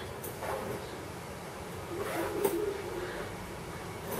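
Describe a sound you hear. A zipper rasps open.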